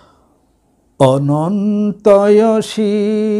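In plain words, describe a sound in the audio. A man chants in a drawn-out, melodic voice close to a microphone.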